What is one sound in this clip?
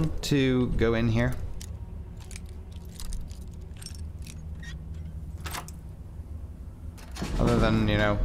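A metal lock pick clicks and scrapes inside a lock.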